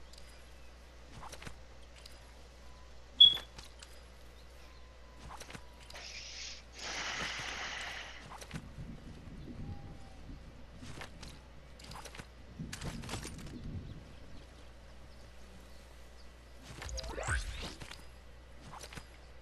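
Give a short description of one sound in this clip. Footsteps patter on grass and dirt.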